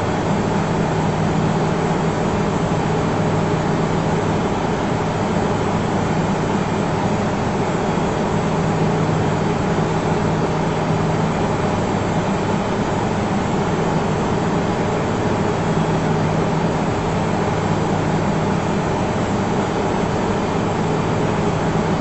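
Jet engines roar steadily in a cockpit.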